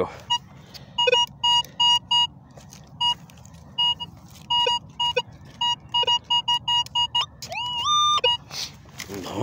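A metal detector beeps in short, repeated bursts.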